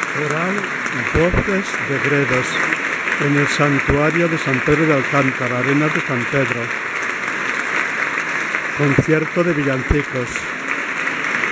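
A choir sings in a large echoing hall.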